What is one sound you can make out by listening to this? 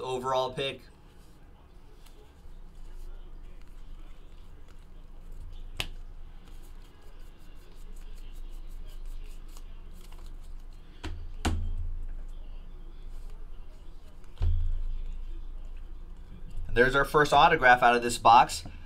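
Trading cards rustle and flick as they are shuffled by hand.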